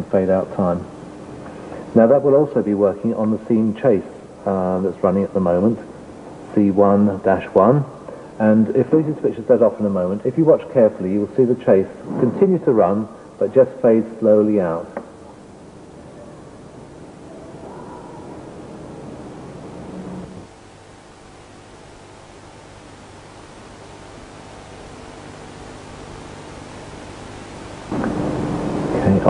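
A middle-aged man explains calmly and clearly, close by.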